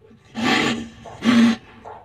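A small hamster gnaws on a stick.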